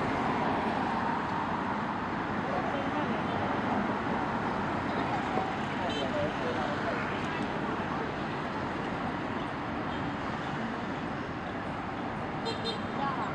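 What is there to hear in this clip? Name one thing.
Cars drive past on a busy street outdoors, with a steady rumble of traffic.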